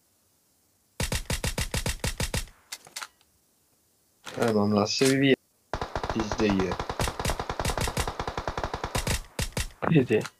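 Rapid bursts of rifle fire crack loudly, with pauses in between.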